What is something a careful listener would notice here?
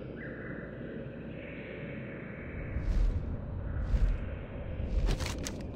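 Large wings flap in steady beats.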